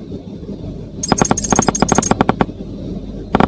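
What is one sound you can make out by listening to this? Bright game chimes ring rapidly as coins are collected.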